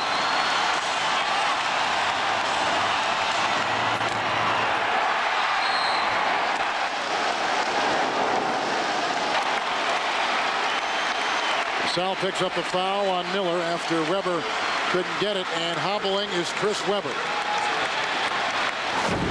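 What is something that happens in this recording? A large crowd roars and cheers loudly in a big echoing arena.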